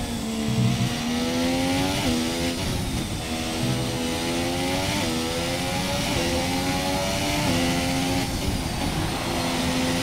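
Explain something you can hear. A racing car engine screams at high revs, rising in pitch and dropping sharply with each gear change.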